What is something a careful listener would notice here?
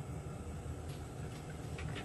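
Oil trickles into a pan.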